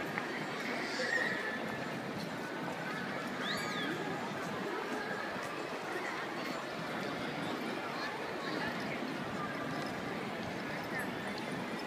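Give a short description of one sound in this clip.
Footsteps of many people tap on pavement.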